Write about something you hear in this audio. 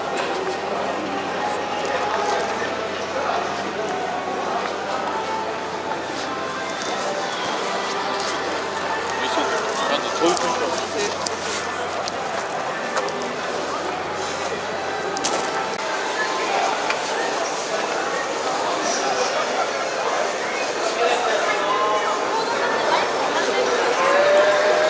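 A crowd of visitors murmurs and chats in a large tent.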